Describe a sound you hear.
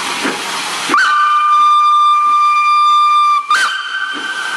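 A steam locomotive whistle blows loudly and steadily.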